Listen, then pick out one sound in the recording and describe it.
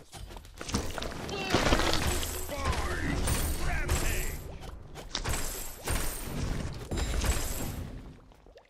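Weapons clash and whoosh in a fast fight.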